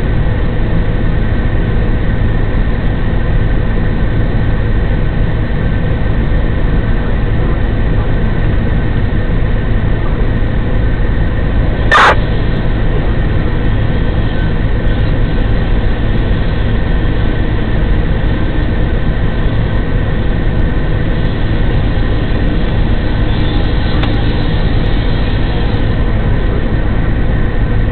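A fire engine idles close by with a steady low rumble.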